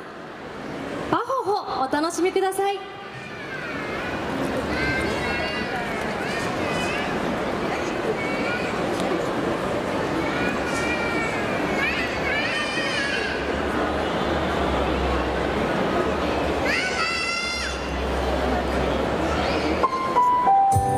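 Music with singing plays over loudspeakers outdoors.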